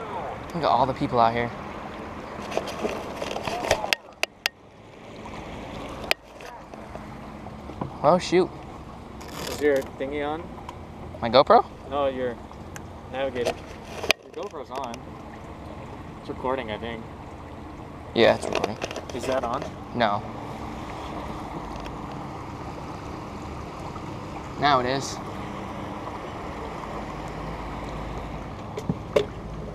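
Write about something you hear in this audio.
Water laps against a small boat's hull.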